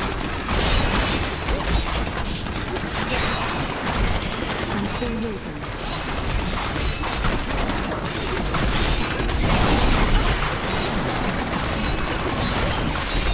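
Spell blasts and explosions crackle and boom constantly.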